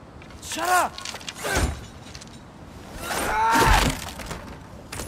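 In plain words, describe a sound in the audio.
A heavy chest lid creaks open with a ringing chime.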